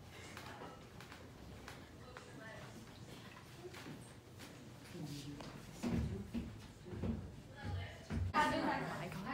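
Young women laugh and chatter nearby.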